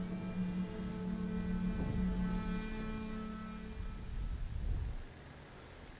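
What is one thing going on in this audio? A machine hums steadily, then stops.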